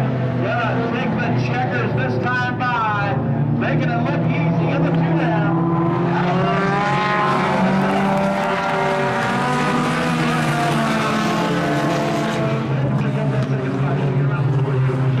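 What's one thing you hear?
Race car engines roar and whine loudly, rising and falling in pitch.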